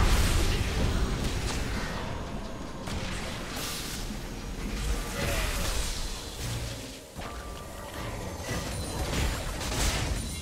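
Spell blasts and weapon hits crackle and boom in a busy fight.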